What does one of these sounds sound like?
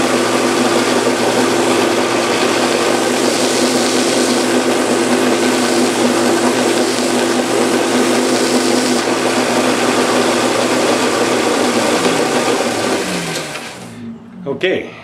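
A belt sander runs with a loud, steady whir, then winds down.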